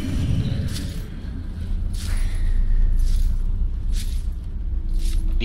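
Footsteps tread slowly on soft ground.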